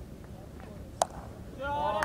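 A bat strikes a ball with a sharp crack.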